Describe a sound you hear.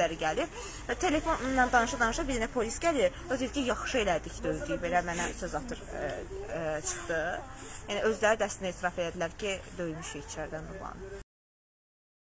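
A young woman speaks earnestly, close to a microphone.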